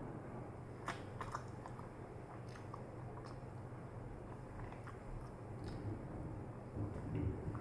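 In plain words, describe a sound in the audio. Chopsticks click against a small plastic cup.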